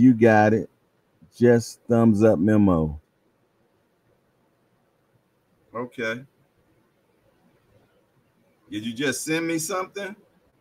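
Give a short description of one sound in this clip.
A man speaks calmly into a close microphone, pausing between phrases.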